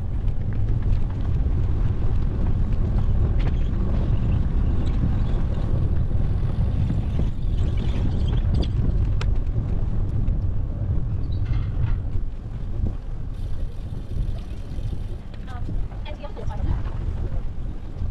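Bicycle tyres hum on a paved path.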